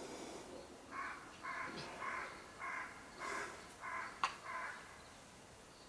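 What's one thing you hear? A man murmurs a prayer in a low voice close by.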